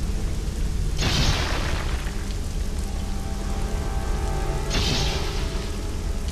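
An energy beam crackles and buzzes in short bursts.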